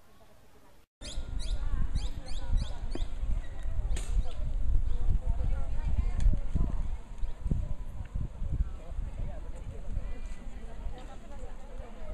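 A crowd of women and men talk and call out nearby.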